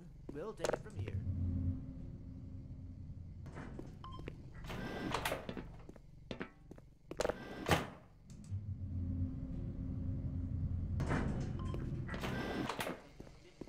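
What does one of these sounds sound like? An elevator hums and rumbles as it moves.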